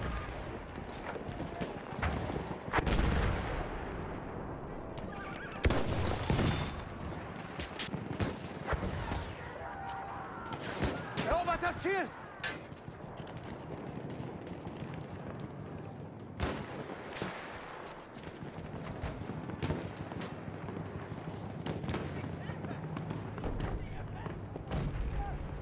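Gunfire and explosions rumble in the distance throughout.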